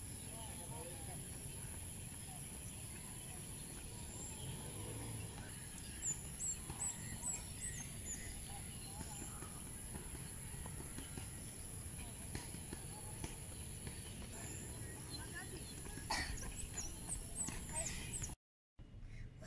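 Children's footsteps patter quickly.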